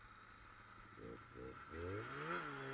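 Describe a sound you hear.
A snowmobile engine turns over briefly a few times.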